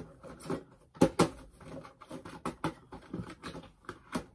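A cardboard box knocks and taps against a table.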